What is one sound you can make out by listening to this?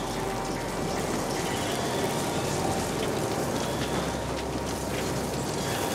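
Electricity crackles and buzzes in sharp bursts.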